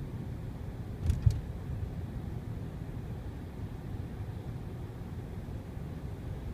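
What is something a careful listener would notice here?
A car engine hums low and steady.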